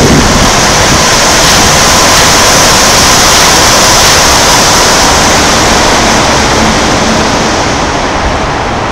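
A vehicle rumbles steadily as it rides along at speed.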